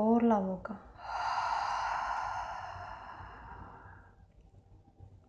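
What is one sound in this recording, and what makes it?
A woman breathes out long and slowly, fading away.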